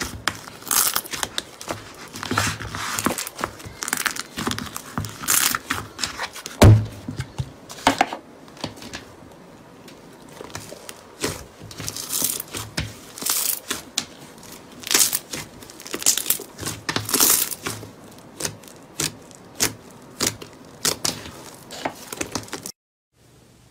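Air bubbles in slime pop and crackle as fingers press it.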